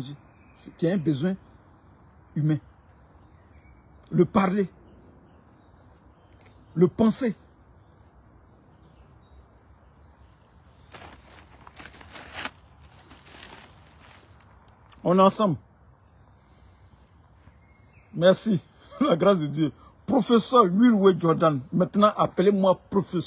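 A man speaks close to a phone microphone, in short bursts with pauses, then more steadily and with animation.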